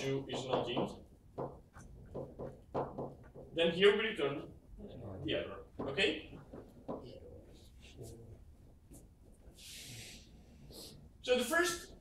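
A young man lectures, speaking with animation.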